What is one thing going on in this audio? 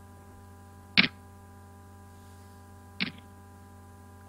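Digital poker chips clack together in short bursts.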